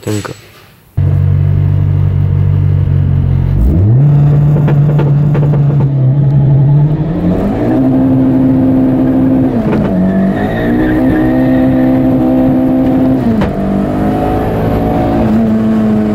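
A car engine drones steadily, then revs higher and drops back as the car shifts up through the gears.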